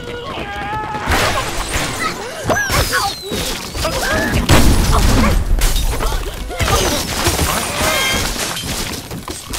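Wooden and stone blocks crash and clatter as a tower collapses.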